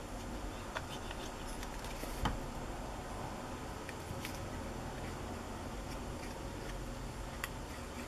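A glue bottle squeezes and squelches as glue is pressed out.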